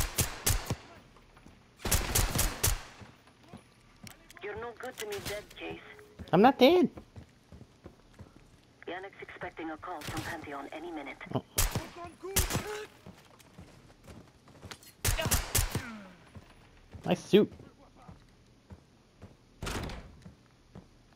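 A pistol fires sharp shots in quick bursts.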